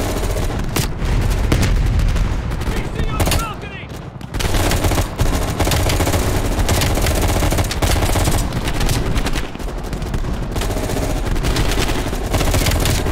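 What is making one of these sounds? A rifle fires rapid bursts of loud, sharp shots.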